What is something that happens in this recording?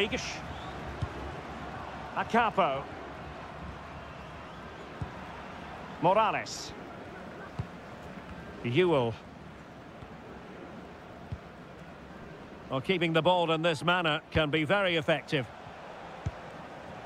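A football is kicked with short dull thuds now and then.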